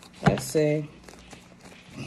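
Cards riffle and shuffle in a woman's hands.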